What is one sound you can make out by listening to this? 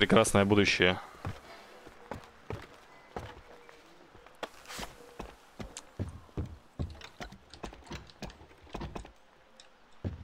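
Footsteps knock on wooden ladder rungs.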